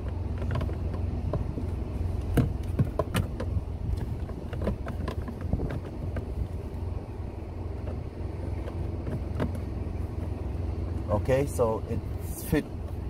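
Plastic parts click and rattle as hands work them loose.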